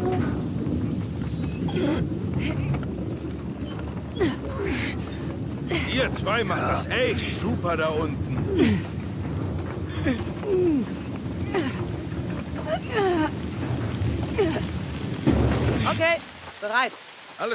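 A heavy cart rumbles and grinds along rails.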